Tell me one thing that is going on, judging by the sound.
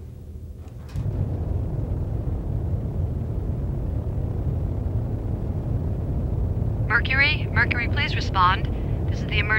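A deep engine rumble drones steadily.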